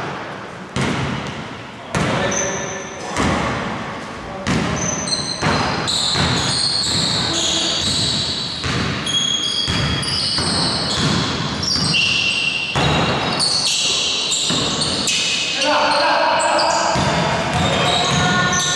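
A basketball bounces on a wooden floor in an echoing hall.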